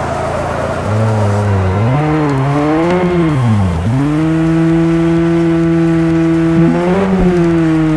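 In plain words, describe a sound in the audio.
A racing car engine revs up and down, its pitch rising and falling.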